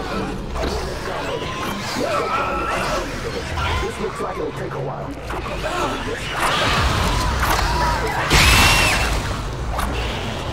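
A monster shrieks and snarls close by.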